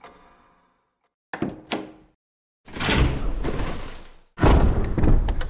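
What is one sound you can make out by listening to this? A heavy door creaks open.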